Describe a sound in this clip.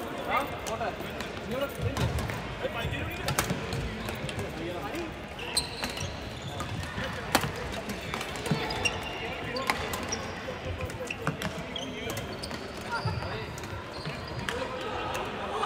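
Players' voices echo through a large hall.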